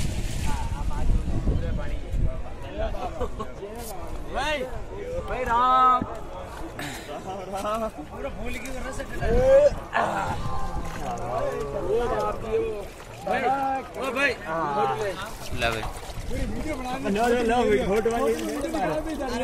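Several young men talk and shout with animation close by.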